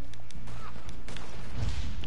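Footsteps brush through grass.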